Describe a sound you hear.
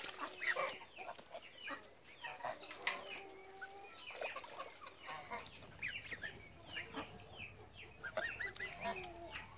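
Geese honk and squawk close by.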